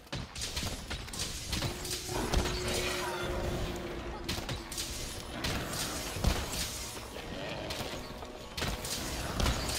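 Explosive blasts burst and crackle in quick bursts.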